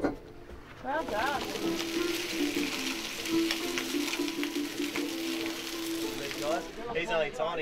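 Sausages sizzle on a hot grill.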